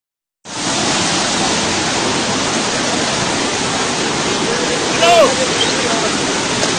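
Muddy floodwater rushes and roars steadily.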